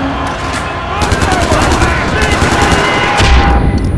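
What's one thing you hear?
An assault rifle fires rapid bursts of shots.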